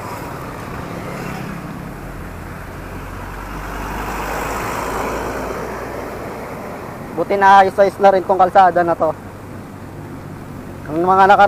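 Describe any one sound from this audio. Bicycle tyres roll steadily over a paved road.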